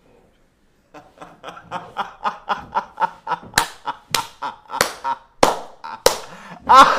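A young man laughs loudly and heartily close to a microphone.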